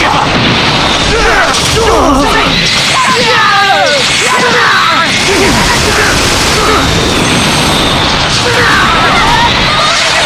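Punches and energy blasts crash repeatedly in a fast fight.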